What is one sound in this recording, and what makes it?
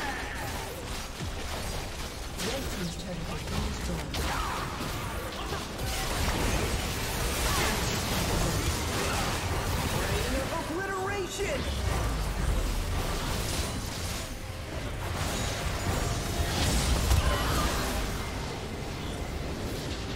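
Video game spell effects and hits clash in a busy battle.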